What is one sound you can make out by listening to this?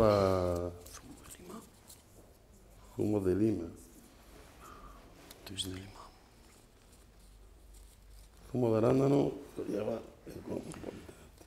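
A man speaks in slow, drawn-out phrases close to a microphone.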